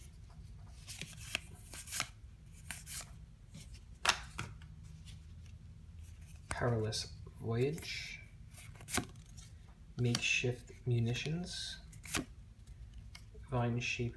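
Playing cards rustle and tap as they are handled and flipped.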